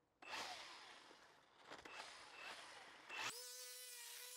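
A starter cord is pulled repeatedly on a small petrol engine.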